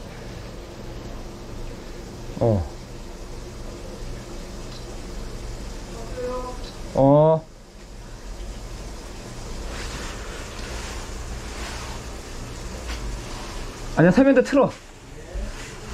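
A drain cleaning cable scrapes and rattles inside a pipe.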